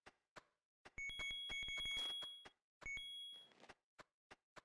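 A bright chiming pickup sound rings a few times.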